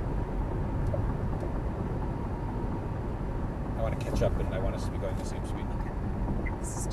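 A car engine hums steadily with road noise at highway speed.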